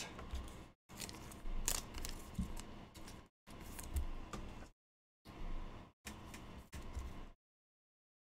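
A plastic card wrapper crinkles and tears.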